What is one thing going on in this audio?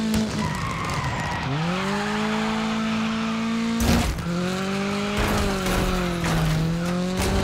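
Tyres skid and scrape on tarmac as a car slides through turns.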